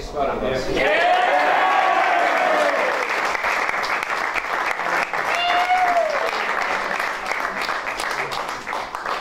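Teenage boys clap their hands.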